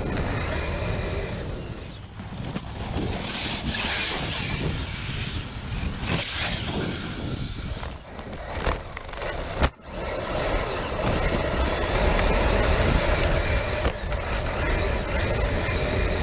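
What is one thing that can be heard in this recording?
A small electric motor whines as a toy car speeds along.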